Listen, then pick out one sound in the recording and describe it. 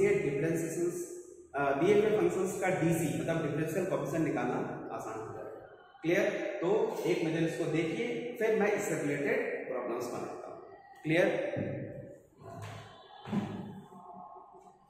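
A man lectures with animation, close by in a room with some echo.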